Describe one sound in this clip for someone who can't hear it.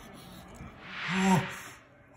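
A young man lets out a short vocal whoop close by.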